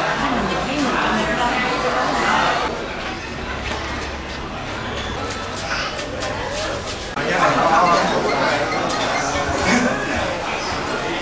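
Several women talk and chat close by.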